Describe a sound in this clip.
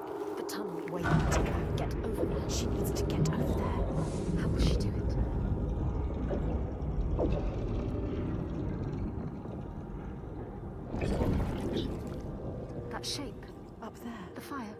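Water flows and rumbles steadily.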